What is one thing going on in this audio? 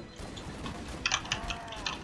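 A heavy blow thumps into a creature.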